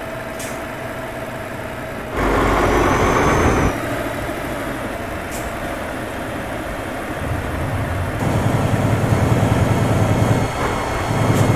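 A truck engine rumbles steadily, rising and falling as it drives.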